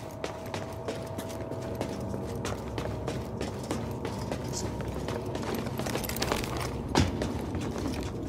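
Footsteps clatter on metal walkways.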